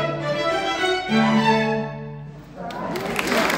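A string quartet plays a final sustained chord.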